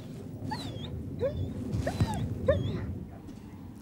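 A dog pants nearby.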